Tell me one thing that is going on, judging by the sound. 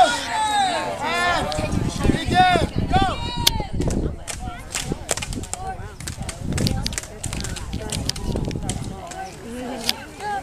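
Plastic toy swords clack against each other.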